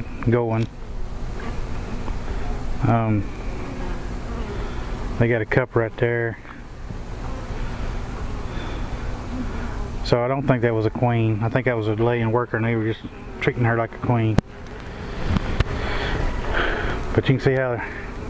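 Bees buzz steadily all around.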